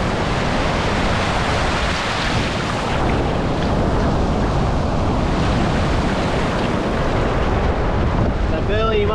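Small waves wash up onto the shore and foam.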